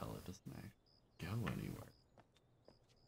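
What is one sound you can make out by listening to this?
A young man talks briefly, close to a microphone.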